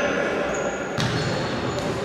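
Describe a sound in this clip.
A ball is struck hard in a large echoing hall.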